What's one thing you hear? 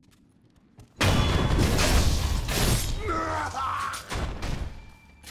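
A blade slashes into a body with a loud, sudden rush.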